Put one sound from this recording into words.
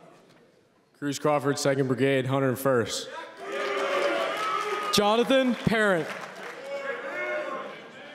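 A large crowd cheers and whoops loudly.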